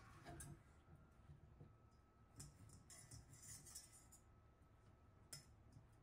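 Bread slices thud softly into a metal bowl.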